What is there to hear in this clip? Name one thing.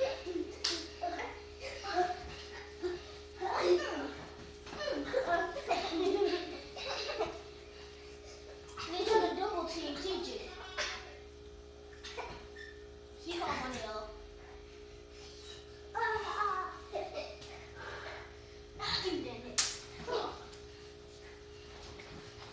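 Young children shout and laugh excitedly nearby.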